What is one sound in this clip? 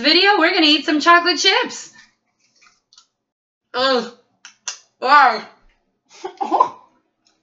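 A young woman squeals and laughs loudly close by.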